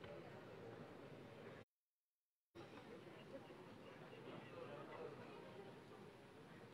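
A crowd of men and women chatters and murmurs nearby.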